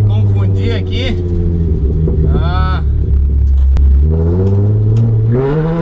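A young man talks close by over the engine.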